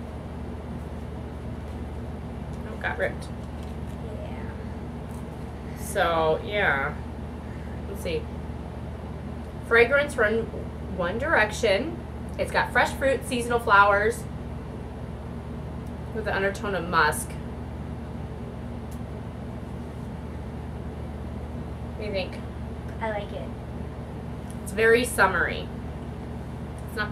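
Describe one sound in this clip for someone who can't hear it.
A girl speaks briefly close by.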